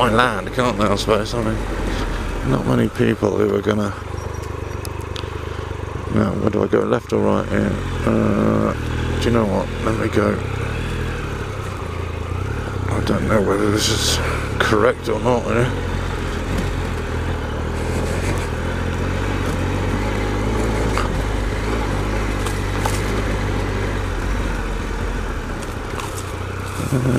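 A motorcycle engine rumbles steadily and revs up and down.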